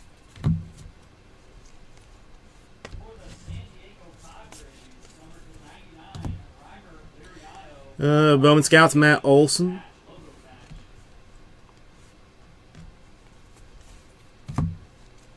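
Trading cards slide and flick against each other in quick shuffles.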